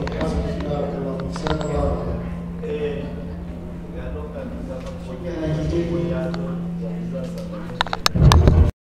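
A young girl recites in a chanting voice through a microphone and loudspeaker.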